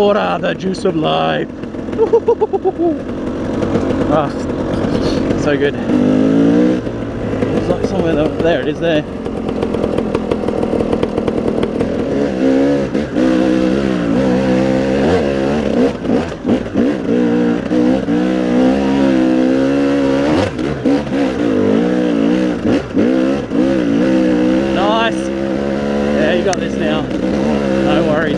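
A motorbike engine revs up and down loudly and close by.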